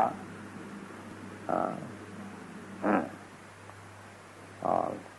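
An elderly man speaks in short, calm bursts.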